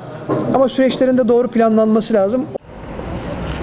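A man speaks close to microphones.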